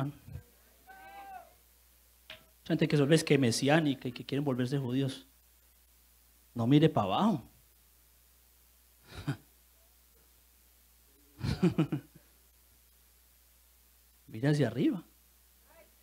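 A man preaches with animation into a microphone, in short bursts with pauses.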